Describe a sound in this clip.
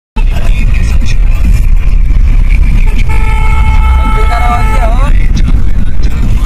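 A car engine and road noise rumble low and steady from inside the car.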